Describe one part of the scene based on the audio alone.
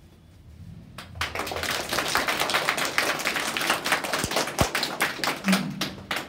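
A small group of people applauds close by, clapping briskly.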